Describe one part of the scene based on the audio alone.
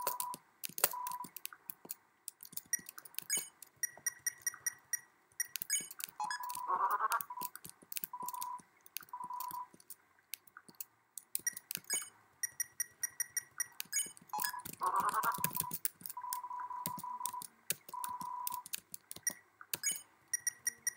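Short electronic blips chatter quickly as game text types out.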